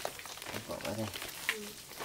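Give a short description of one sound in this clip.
Grain pours into a woven basket.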